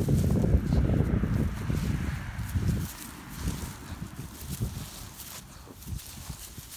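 An animal hops over dry grass with soft, low thumps.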